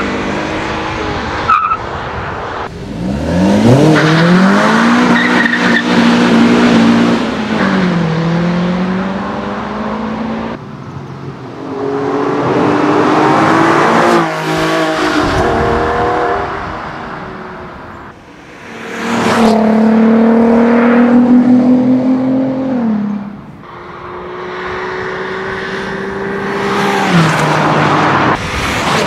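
A car engine roars and revs hard as the car speeds away, shifting gears.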